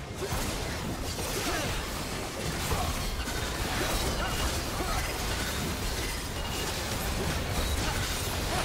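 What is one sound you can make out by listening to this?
Spell effects and weapon hits crackle and clash in a game battle.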